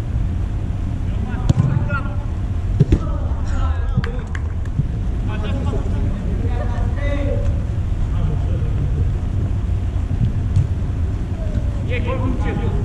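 Men shout to each other across an echoing indoor hall.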